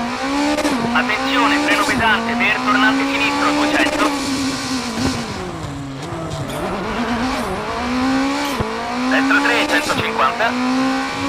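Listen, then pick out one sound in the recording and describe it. Tyres squeal on tarmac through corners.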